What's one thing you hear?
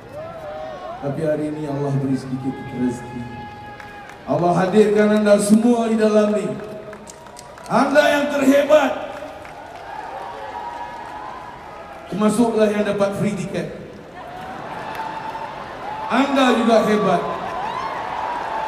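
A man sings powerfully through loudspeakers.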